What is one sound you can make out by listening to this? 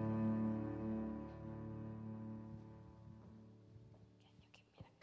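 A piano chord rings out in a large hall and slowly fades.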